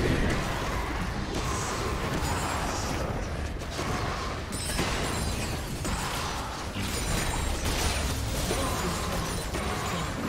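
Video game spells and attacks crash and whoosh in a busy fight.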